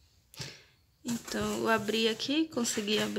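Cardboard flaps scrape and rustle as a box is opened.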